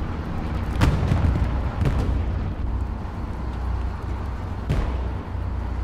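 Explosions boom sharply now and then.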